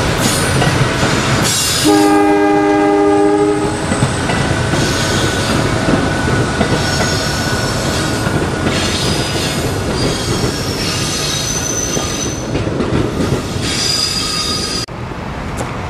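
Train wheels squeal on the rails.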